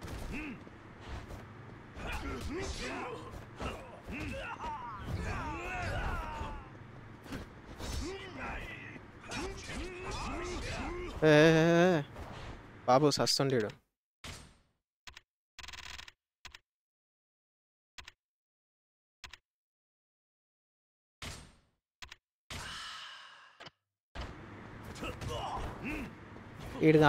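Punches and kicks thud in a fast game fight.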